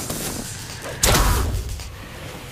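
A wooden door swings open with a thud.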